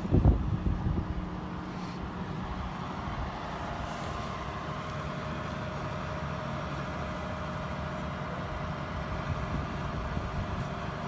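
A boat hoist's engine hums steadily nearby.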